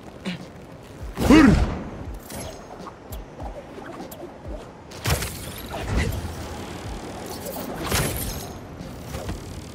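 Whooshing swings of a game character rush past.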